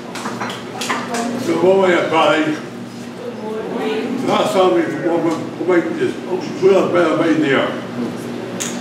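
A man speaks aloud to a group.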